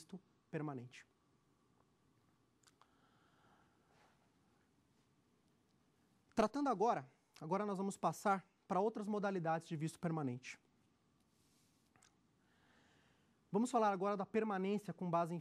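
A man speaks calmly and clearly into a microphone, presenting, with pauses between phrases.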